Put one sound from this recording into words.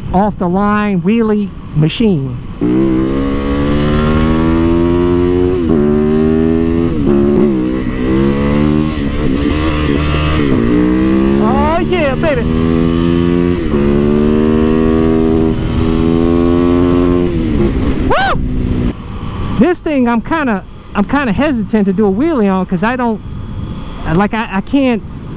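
A motorcycle engine revs up and down loudly, its pitch rising and dropping with each gear change.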